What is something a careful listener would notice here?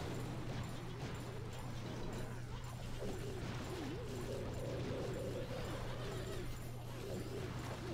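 Game explosions thud and crackle.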